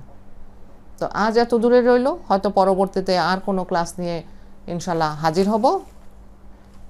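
A middle-aged woman speaks calmly and clearly into a clip-on microphone, close by.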